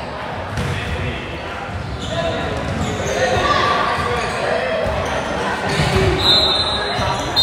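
Voices of children and adults chatter and call out in a large echoing gym.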